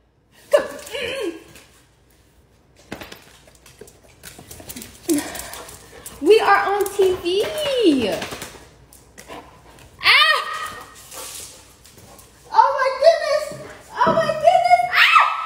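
A young woman laughs and squeals playfully close by.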